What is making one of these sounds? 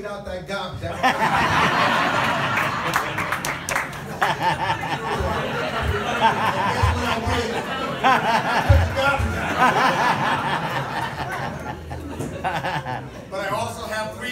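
A crowd of people chatters and laughs loudly nearby.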